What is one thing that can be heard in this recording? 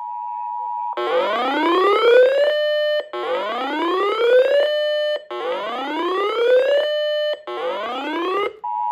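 A radio sounds rising warbling alarm tones over and over.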